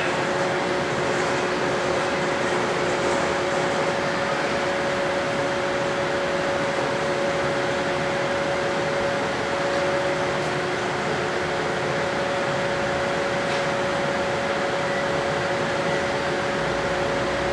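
A diesel train engine idles with a steady hum.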